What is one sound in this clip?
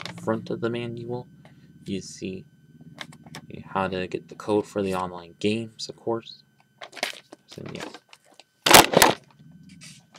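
A paper booklet rustles and crinkles as it is handled.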